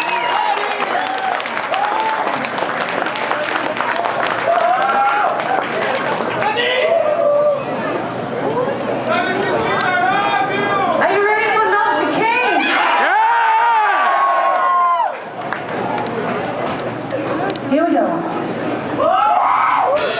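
Electric guitars play loudly through amplifiers.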